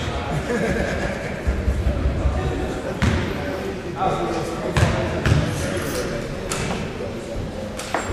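Spectators chatter in an echoing gym.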